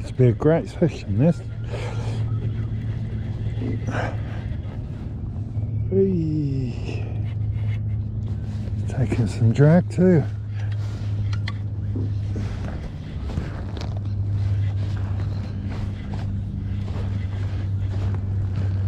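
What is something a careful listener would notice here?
A fishing reel clicks softly as its handle is cranked.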